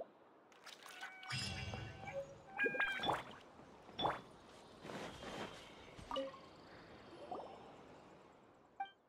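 A bright, busy jingle plays for a few seconds.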